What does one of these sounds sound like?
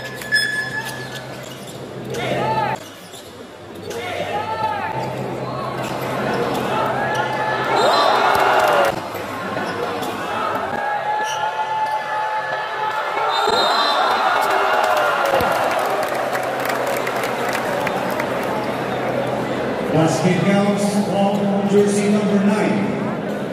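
A large crowd cheers and murmurs in an echoing hall.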